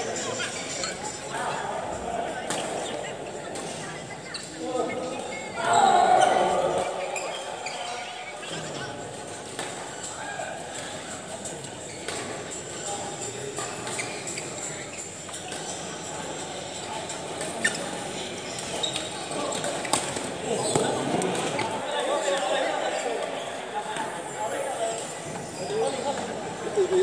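Men and women call out and chatter across a large echoing hall.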